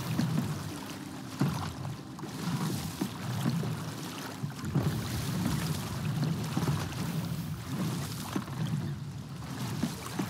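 Ocean waves roll and slosh steadily.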